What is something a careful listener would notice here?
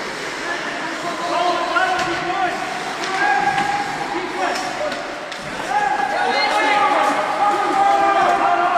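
Spectators nearby shout and cheer.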